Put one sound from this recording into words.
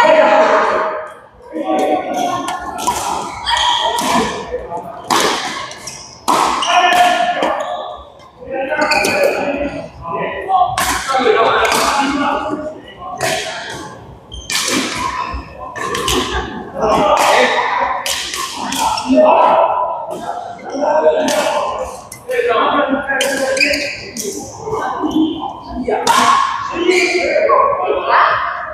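Men talk and call out to each other nearby.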